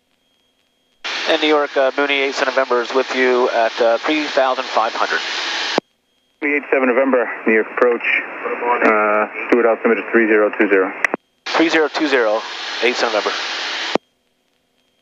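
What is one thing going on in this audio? A man speaks calmly through a headset intercom.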